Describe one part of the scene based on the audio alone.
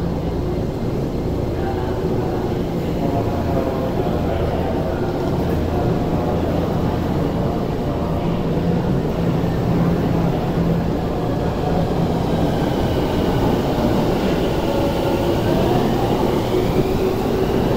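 A train's wheels clatter over rail joints.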